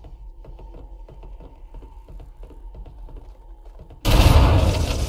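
Footsteps tap on a metal floor.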